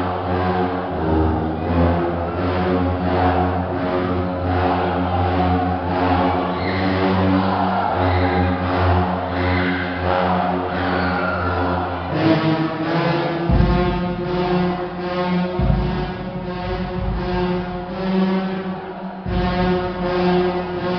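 Drums beat a steady rhythm.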